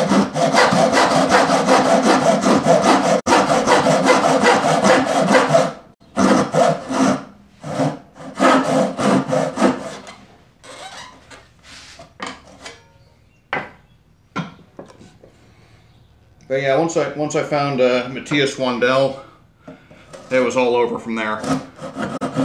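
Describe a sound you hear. A hand saw rasps back and forth through wood.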